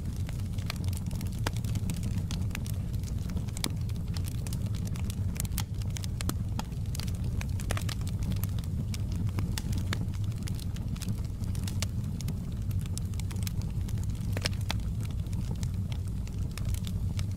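Flames roar with a low steady rumble.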